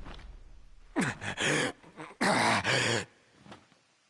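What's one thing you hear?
A young man groans and pants in pain.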